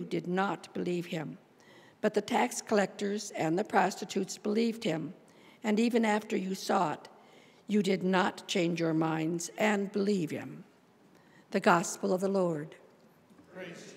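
An elderly woman reads out calmly through a microphone in an echoing room.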